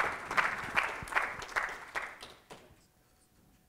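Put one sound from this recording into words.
An audience claps in a large hall.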